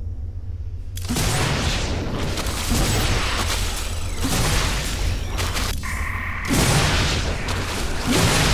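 A computer game plays loud whooshing and chiming menu sound effects.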